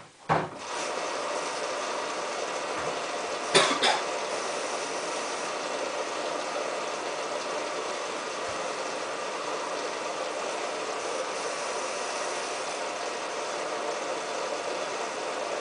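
Wet laundry tumbles and sloshes inside a washing machine.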